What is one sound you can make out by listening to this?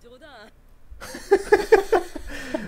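Two young men laugh together into close microphones.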